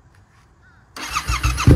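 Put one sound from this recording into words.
A motorcycle engine cranks and starts up loudly.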